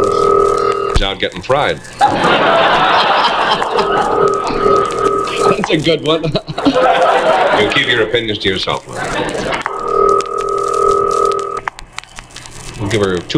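A man talks cheerfully on a phone.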